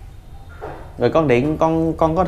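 A woman speaks nearby in a calm, clear voice.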